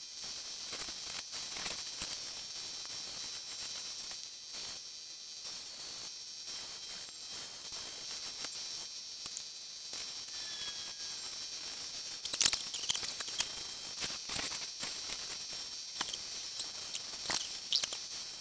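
A stone grinds against a wet wheel.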